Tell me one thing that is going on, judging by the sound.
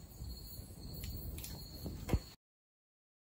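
A small blast goes off with a sharp pop.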